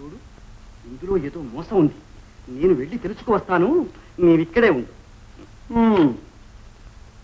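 A man speaks firmly, close by.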